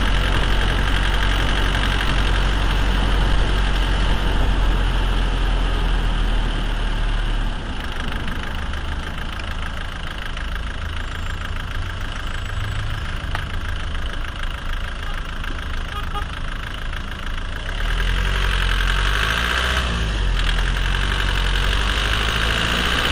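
A car engine runs with a steady low hum.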